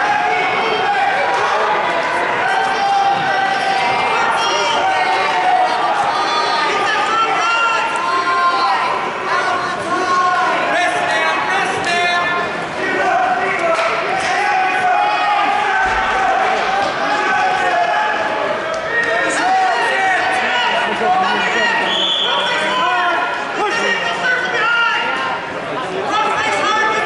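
A crowd of spectators talks and cheers in a large echoing hall.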